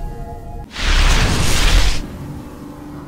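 A loud rushing whoosh bursts out and quickly stops.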